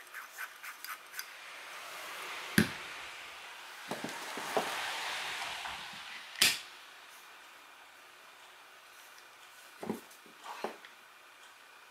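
Metal parts click and clack as they are handled.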